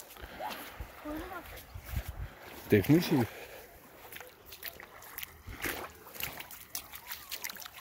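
Small waves lap gently at the shore.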